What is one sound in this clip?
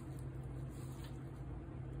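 A metal spoon scrapes lightly over soft soap.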